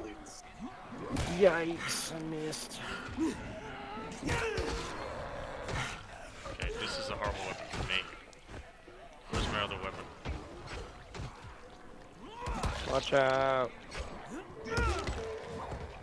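A heavy weapon thuds into flesh.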